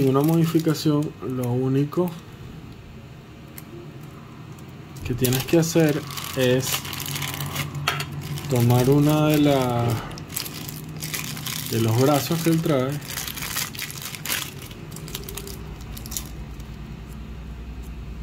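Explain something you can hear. A plastic bag crinkles and rustles in hands close by.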